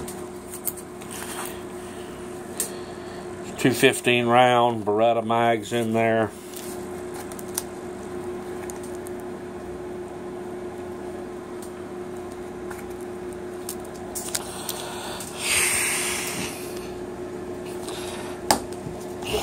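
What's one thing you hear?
A nylon bag rustles and scrapes as a hand handles it.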